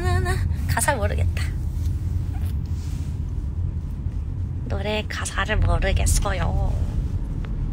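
A young woman speaks playfully close to a phone microphone.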